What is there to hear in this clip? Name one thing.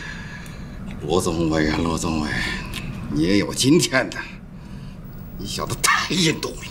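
A middle-aged man speaks with animation, nearby.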